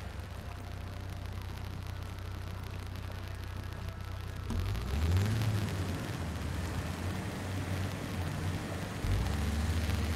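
An engine rumbles low and steady, then revs harder.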